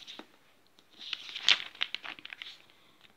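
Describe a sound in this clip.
A glossy paper page rustles as it is turned.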